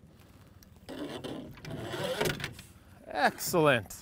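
Water splashes as a fish is pulled into a net.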